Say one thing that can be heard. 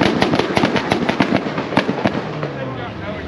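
A race car engine revs loudly in the distance with sharp crackles.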